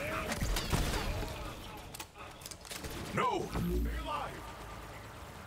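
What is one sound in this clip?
Electronic zaps and whooshes sweep up and down.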